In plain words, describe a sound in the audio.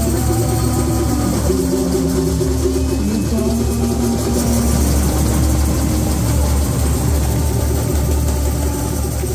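A man sings through a loudspeaker over the drums.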